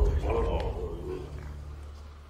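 An elderly man murmurs quietly, close by.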